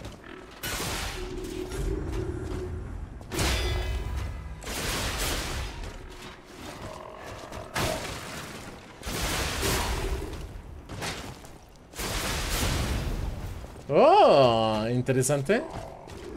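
Metal weapons clang and clash in a fight.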